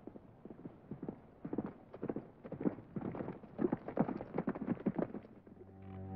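Horses' hooves clatter on a dirt street as riders gallop closer.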